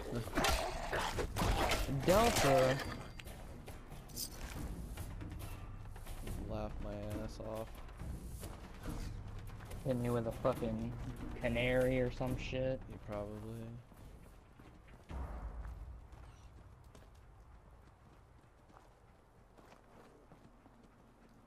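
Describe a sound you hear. Footsteps crunch over loose debris.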